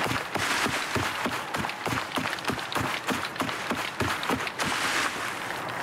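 Footsteps tramp steadily over grassy ground.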